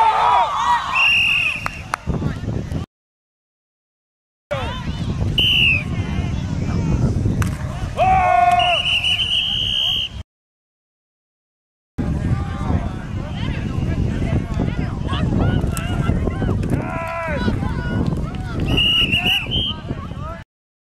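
A whistle blows sharply several times.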